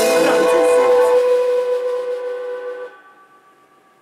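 A cymbal crash rings out and slowly fades.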